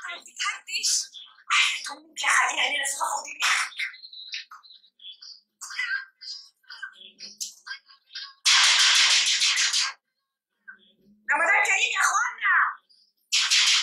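A young woman cries out in fear.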